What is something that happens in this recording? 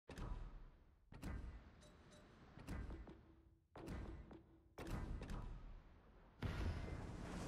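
Short electronic menu clicks sound one after another.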